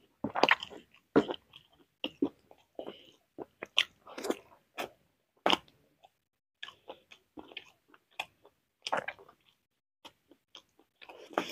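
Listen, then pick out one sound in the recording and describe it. A man chews and smacks his lips loudly close to a microphone.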